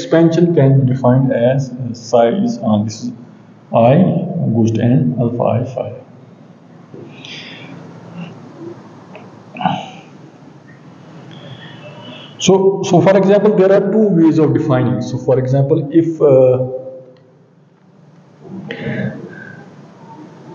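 A middle-aged man lectures calmly.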